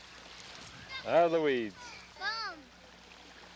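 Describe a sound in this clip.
A young child calls out in a high voice nearby.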